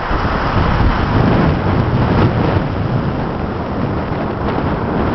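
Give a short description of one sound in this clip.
Wind blows hard across the open shore.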